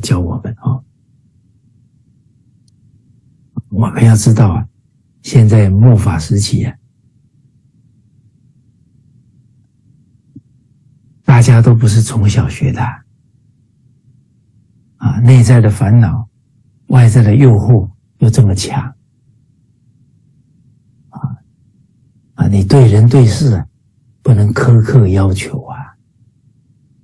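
A middle-aged man speaks calmly in short phrases, with pauses between them, over an online call.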